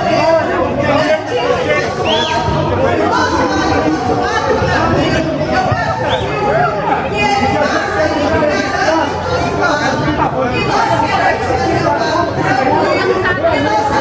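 A crowd of men and women talk and chatter loudly all around, outdoors.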